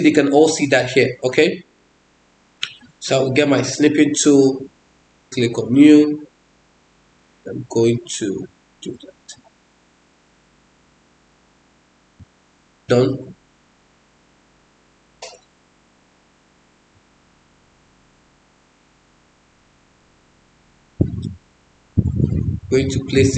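A woman speaks calmly and close to a microphone, pausing often between phrases.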